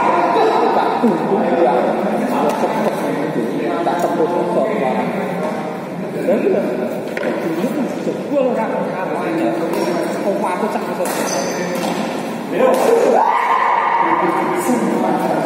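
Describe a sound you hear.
Men talk and call out in an echoing hall.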